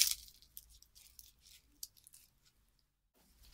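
Dry seed pods crackle and rustle between fingers.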